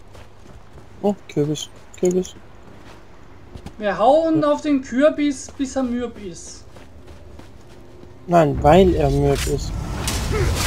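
A young man talks calmly into a microphone.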